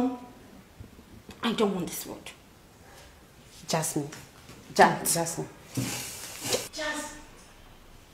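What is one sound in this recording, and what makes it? A woman speaks sharply and with animation, close by.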